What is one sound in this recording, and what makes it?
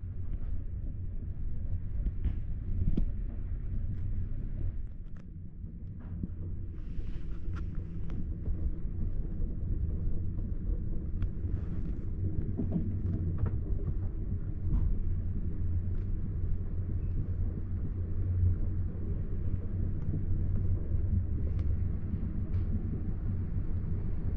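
A train's wheels click and knock over rail joints.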